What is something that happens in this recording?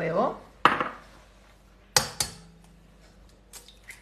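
An egg cracks against a bowl.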